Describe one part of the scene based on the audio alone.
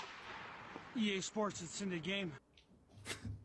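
A young man speaks with animation close to a phone microphone.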